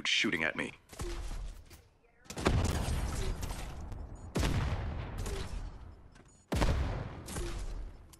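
Gunfire and explosions boom from a video game.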